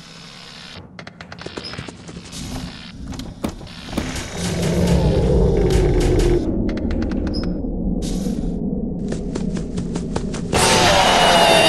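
A mechanical creature screeches loudly and harshly.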